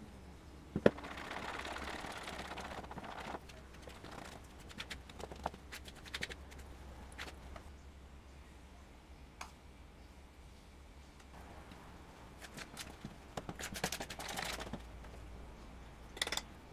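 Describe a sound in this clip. A spoon scrapes and clinks against a plastic bowl while mixing.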